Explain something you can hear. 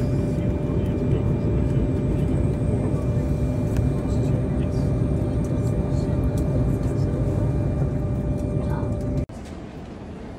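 A jet engine roars steadily with a loud, low rumble.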